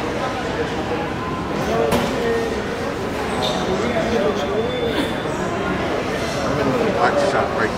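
Electric guitars play along.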